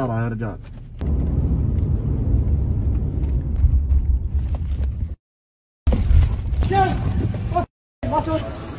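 A car engine rumbles while driving.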